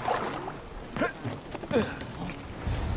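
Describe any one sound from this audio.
Water splashes loudly as a swimmer climbs out onto a ship's hull.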